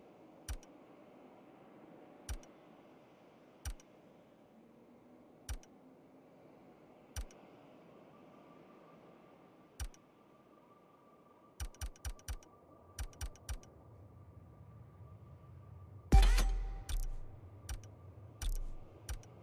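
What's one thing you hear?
Short electronic menu clicks tick as selections change.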